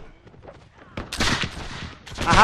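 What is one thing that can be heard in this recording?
A musket fires with a loud bang.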